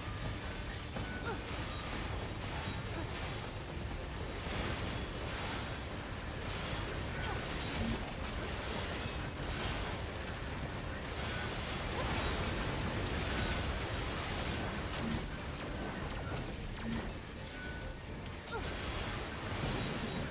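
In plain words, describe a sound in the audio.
Metal blades clash and clang rapidly in a fight.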